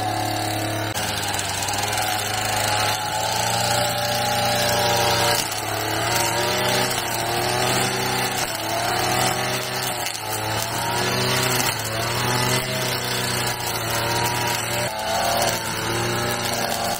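A brush cutter engine runs and revs.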